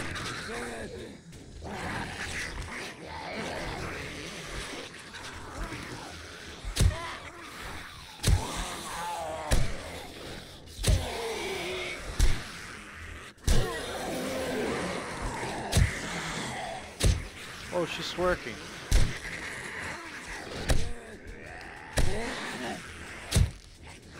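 Monsters growl and moan close by.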